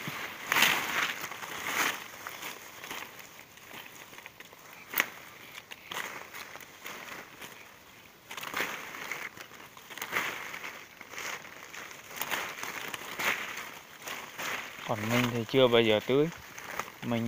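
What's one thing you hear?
Leaves rustle and branches shake close by.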